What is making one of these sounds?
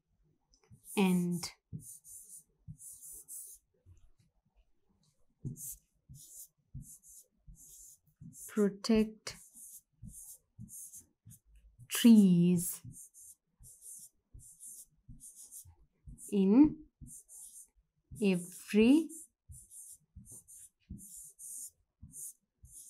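A marker squeaks and scratches on a whiteboard in short strokes.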